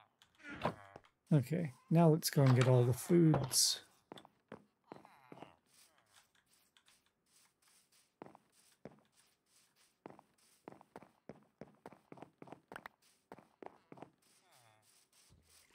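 Footsteps thud steadily on grass and wooden steps.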